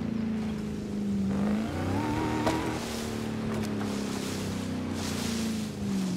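Bushes and branches crash and snap against a vehicle.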